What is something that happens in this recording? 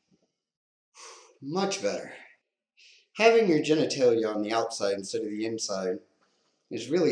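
A man speaks close by, calmly and then with emphasis.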